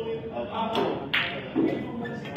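A cue strikes a billiard ball with a sharp tap.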